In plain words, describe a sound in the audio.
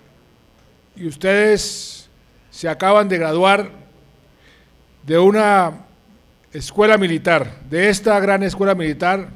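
A middle-aged man speaks slowly and formally into a microphone over loudspeakers.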